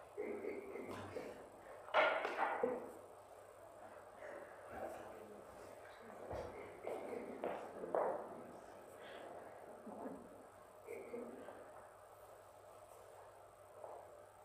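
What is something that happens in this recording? Objects clink softly on a table.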